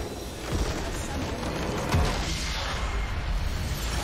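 A game structure explodes with a deep rumbling boom.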